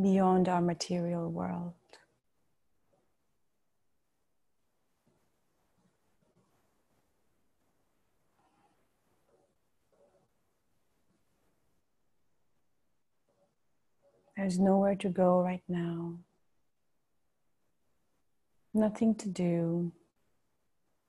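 A woman chants slowly in a calm, drawn-out voice, close by.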